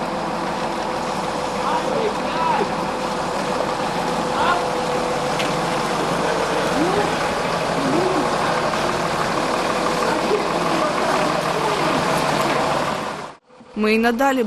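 A large engine rumbles steadily nearby.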